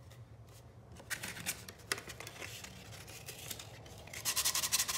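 Paper rustles as a sheet of sandpaper is handled.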